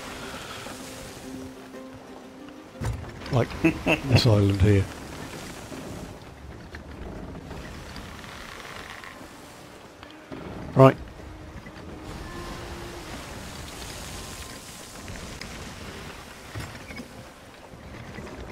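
Wind blows steadily through the sails and rigging.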